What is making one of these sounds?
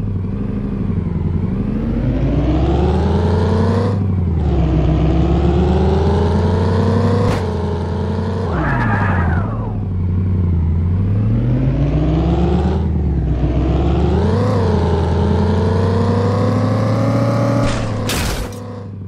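A truck engine revs up and down through gear changes.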